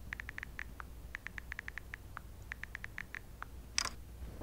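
A phone beeps rapidly as keys are tapped.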